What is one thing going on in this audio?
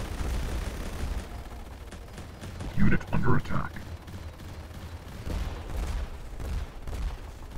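Explosions boom and crackle.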